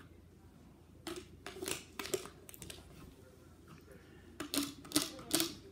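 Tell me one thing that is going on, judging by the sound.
A dog noses and rustles a crinkly plastic toy.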